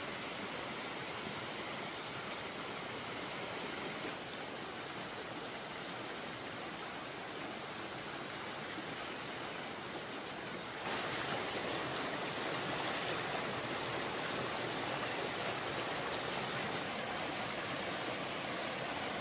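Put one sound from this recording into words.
A stream of water rushes and splashes steadily over rocks nearby.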